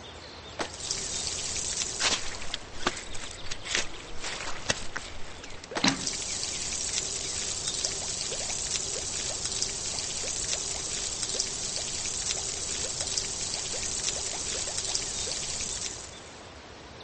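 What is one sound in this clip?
Water sprays with a steady hiss.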